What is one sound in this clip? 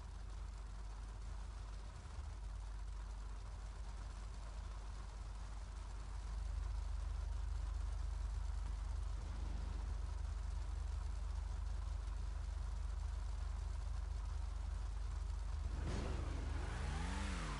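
Many race car engines rumble steadily.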